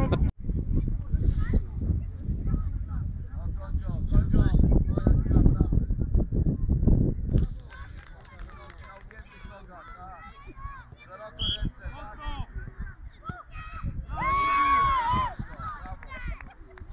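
Young children shout and call out at a distance in the open air.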